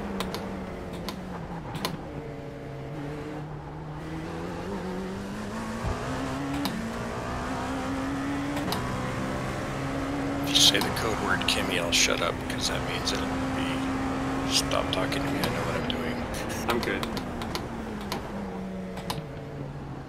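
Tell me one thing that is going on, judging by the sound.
A racing car engine roars, its pitch rising and falling through the gears.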